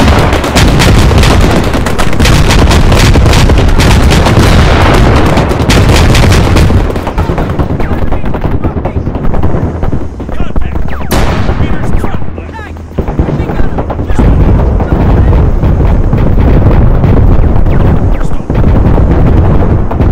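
Explosions boom heavily.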